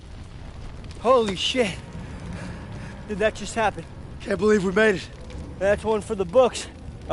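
A young man shouts excitedly close by.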